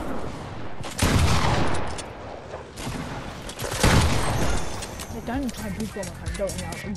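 Gunshots ring out in loud bursts.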